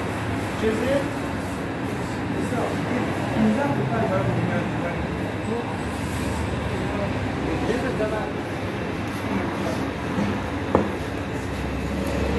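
A gas oven burner roars steadily.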